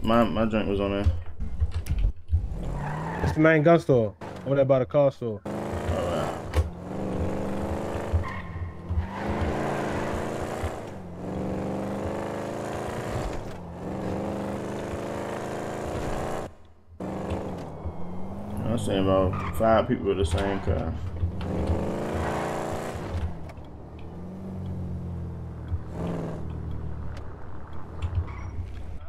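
A car engine revs and roars as the car speeds along.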